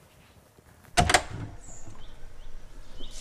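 A door swings open with a thud.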